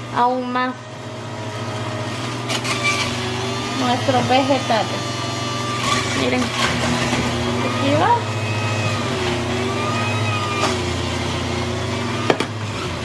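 Vegetables grind and squeal as a juicer crushes them.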